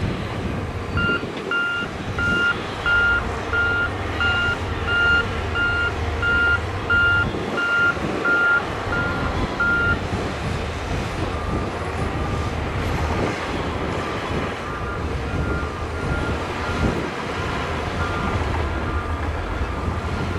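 A reversing alarm beeps repeatedly.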